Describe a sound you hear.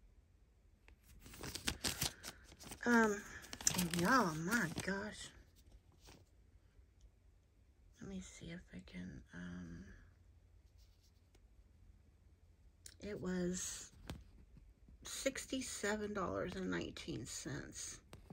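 A paper receipt rustles in a hand.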